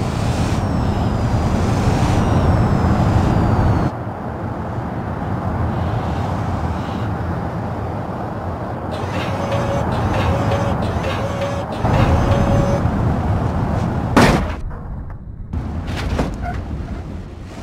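A car engine drones steadily as the car drives along a road.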